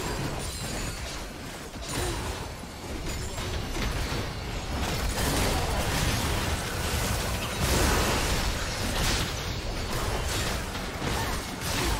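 Game weapons clash and strike in quick bursts.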